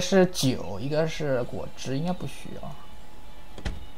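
A fridge door shuts with a soft thud.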